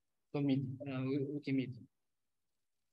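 A young man speaks briefly into a microphone, heard through an online call.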